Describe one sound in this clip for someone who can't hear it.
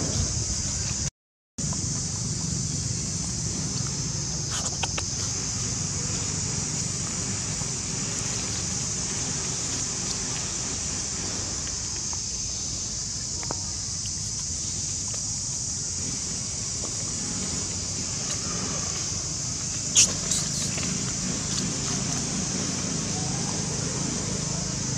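Young monkeys shuffle and scratch about on dry leaves and dirt.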